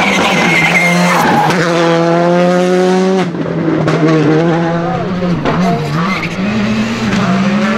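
A rally car engine roars loudly at high revs, rising and falling with gear changes.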